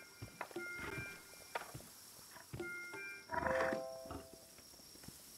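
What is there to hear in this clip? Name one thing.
Short game chimes ring out in quick bursts.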